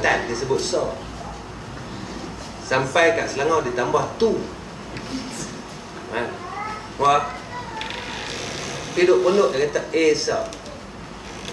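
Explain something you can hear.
A man speaks calmly and in pauses, close by.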